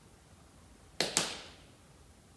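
A man claps his hands twice.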